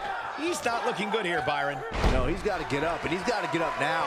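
Bodies thud heavily onto a wrestling mat.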